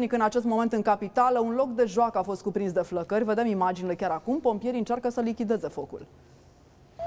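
A woman speaks calmly and clearly, as if reading the news into a microphone.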